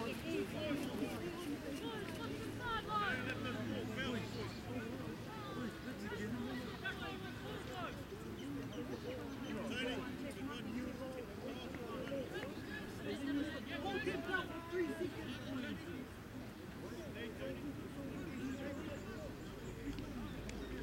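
Several young people talk and call out nearby in the open air.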